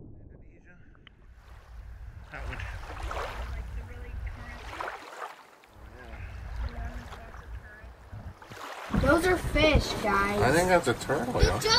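Water laps and splashes gently at the surface.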